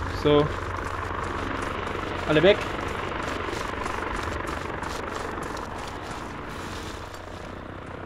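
Footsteps tread softly over grass.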